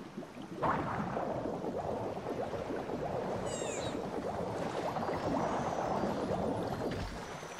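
Water bubbles and gurgles steadily.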